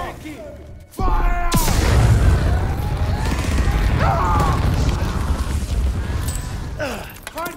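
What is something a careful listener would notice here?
A flamethrower roars with a steady rushing blast.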